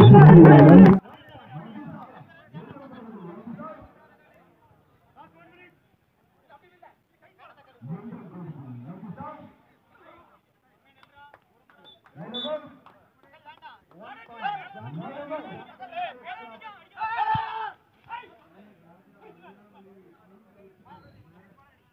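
Young men shout and call out nearby.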